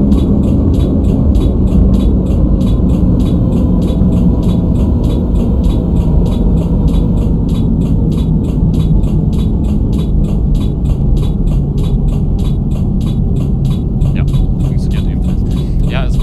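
A tram rumbles steadily along the rails.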